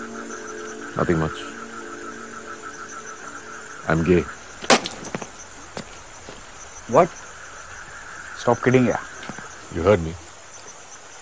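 A man speaks in short, tense phrases nearby.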